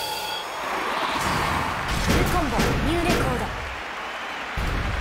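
Bright electronic game music plays.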